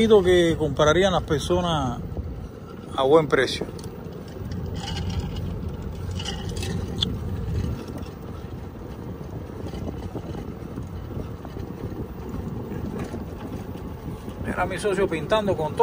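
Tyres crunch and roll over a rough road.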